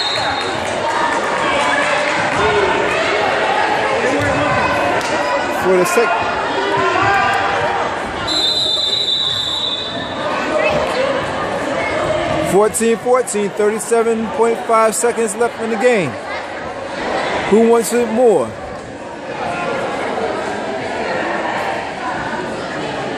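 A crowd of spectators talks and cheers in a large echoing hall.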